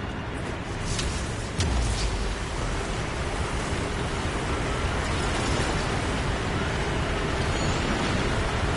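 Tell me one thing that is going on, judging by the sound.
A deep rumble roars and swells.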